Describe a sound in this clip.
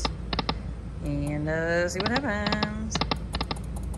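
A slot machine plays a rising jingle of electronic tones.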